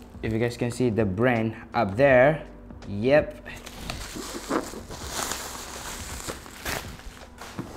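Plastic wrapping crinkles and rustles as it is pulled off.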